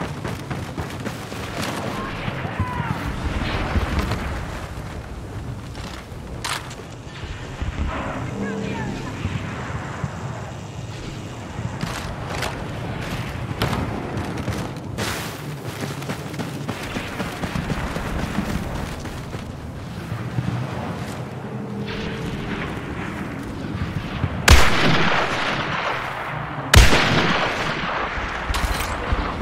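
Heavy boots crunch on sand at a steady pace.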